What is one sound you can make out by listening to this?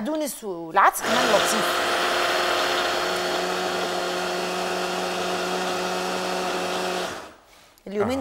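An electric blender whirs steadily.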